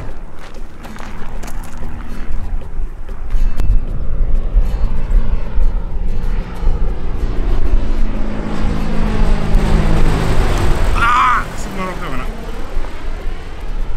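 A small propeller plane's engine drones overhead, growing louder and then dropping in pitch as it passes.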